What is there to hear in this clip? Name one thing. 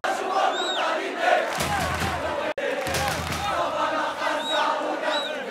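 A large crowd of young men chants and cheers loudly outdoors.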